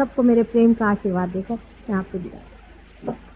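A middle-aged woman speaks calmly and warmly.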